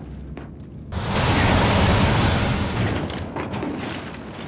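A heavy metal door grinds and rumbles open.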